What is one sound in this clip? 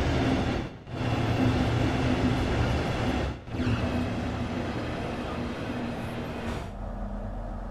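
A train rumbles and roars loudly as it runs along the track.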